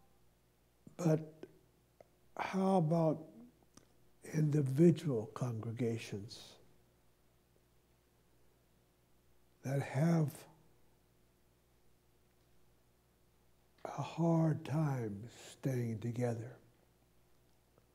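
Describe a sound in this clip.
An elderly man speaks calmly through a microphone, with pauses between phrases.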